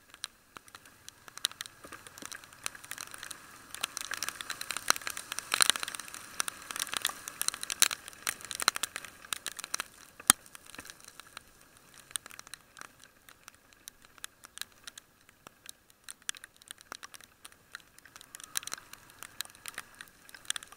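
Raindrops patter and tap close by, outdoors in steady rain.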